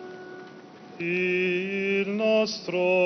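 A young man sings a chant into a microphone.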